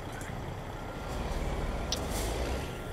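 A truck engine rumbles low and steady.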